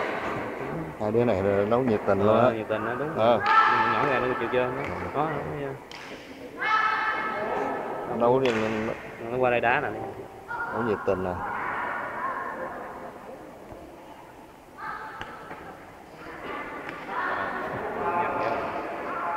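Young children shout loudly in a large echoing hall.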